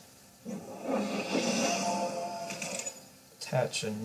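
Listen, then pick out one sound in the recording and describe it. A game's magic attack effect whooshes and crackles.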